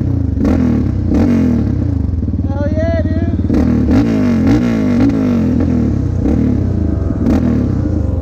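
A quad bike engine idles and revs close by.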